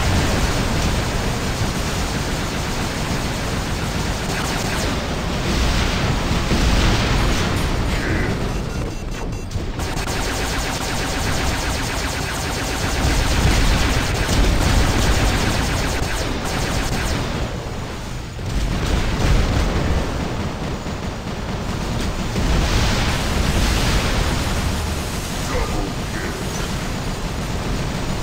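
Heavy mechanical footsteps thud and clank steadily.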